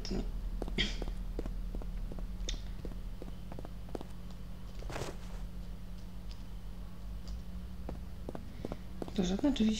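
Quick footsteps thud on a soft floor.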